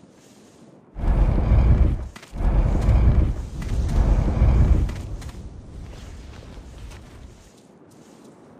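A heavy stone block grinds and scrapes as it is pushed.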